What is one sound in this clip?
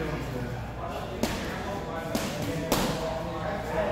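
Bare feet step and thump on a padded mat.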